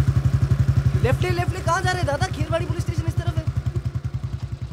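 A young man shouts from a moving motorcycle.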